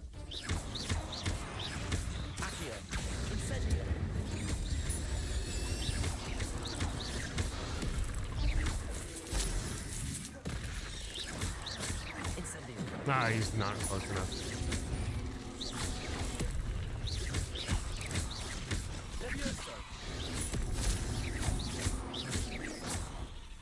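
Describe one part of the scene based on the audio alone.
Spell blasts and impacts crackle and boom.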